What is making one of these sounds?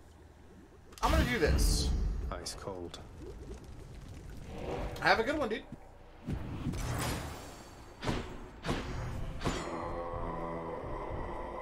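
Game sound effects whoosh and chime.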